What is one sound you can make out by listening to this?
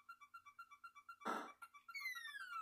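Quick electronic game beeps play through a television speaker.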